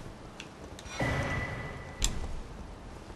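A short chime rings as an item is picked up.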